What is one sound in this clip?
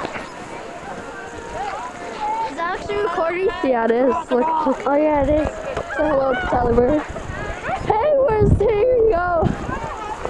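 Teenagers talk and call out to each other close by, outdoors.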